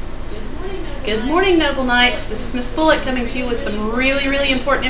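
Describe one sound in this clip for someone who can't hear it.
A woman speaks calmly into a microphone close by.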